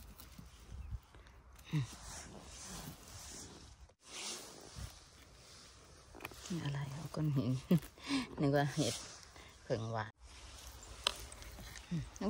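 Dry twigs and needles rustle and crackle under gloved hands.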